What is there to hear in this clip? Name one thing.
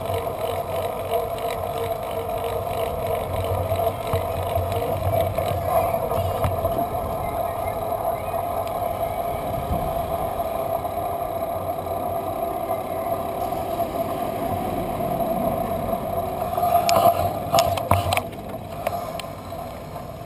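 A bicycle's wheels hum and rattle over the road.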